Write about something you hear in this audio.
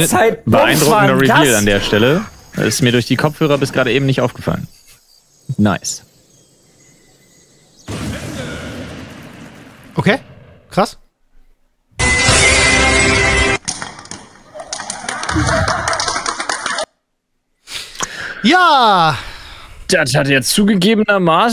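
Young men talk and laugh loudly with animation through microphones.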